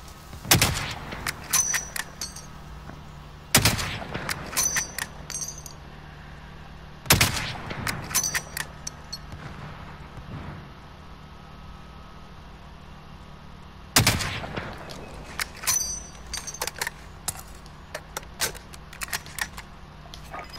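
A rifle bolt clacks and clicks metallically.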